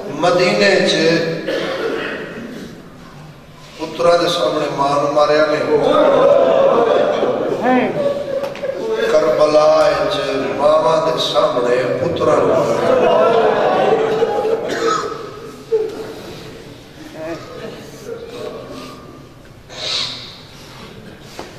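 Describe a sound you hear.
A man recites with passion into a microphone, heard through a loudspeaker in an echoing hall.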